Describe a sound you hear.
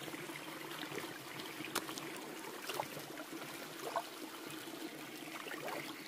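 Shallow water splashes around walking feet.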